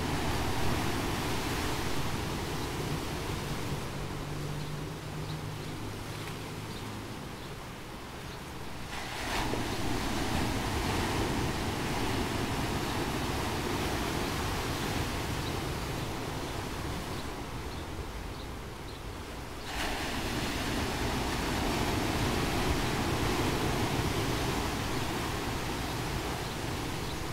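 Waves crash and surge over rocks close by.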